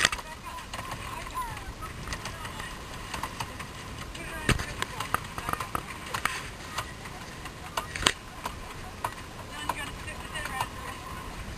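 Water rushes and splashes along a boat's hull.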